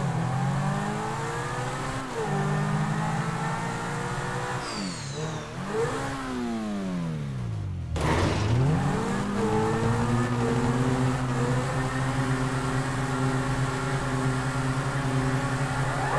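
A race car engine roars steadily, its pitch rising and falling as it shifts gears.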